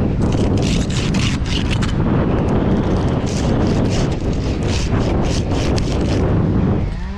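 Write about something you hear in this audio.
A hand saw cuts through a branch with quick rasping strokes.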